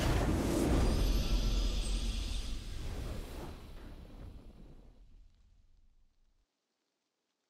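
A triumphant game fanfare plays and fades away.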